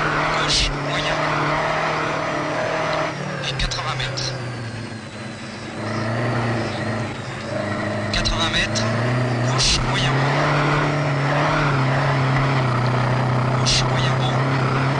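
Loose snow and gravel clatter against the car's underside.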